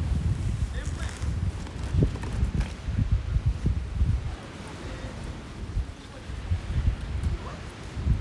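A wood fire crackles in a small grill.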